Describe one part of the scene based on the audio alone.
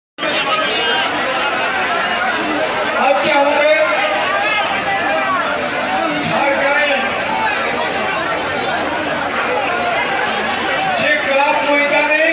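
A man speaks forcefully into a microphone, heard through loudspeakers outdoors.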